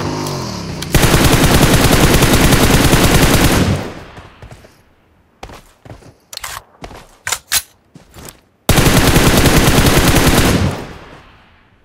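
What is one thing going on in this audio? A rifle fires in rapid, rattling bursts.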